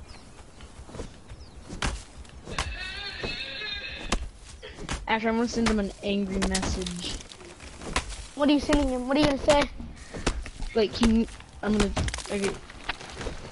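An axe chops into a tree trunk with sharp thuds.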